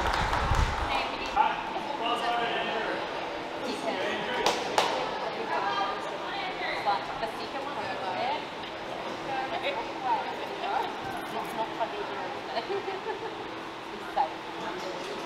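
Men talk and call out in a large echoing hall.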